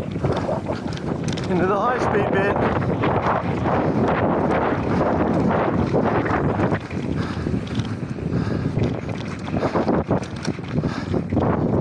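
Bike tyres crunch and rattle over a rough dirt trail.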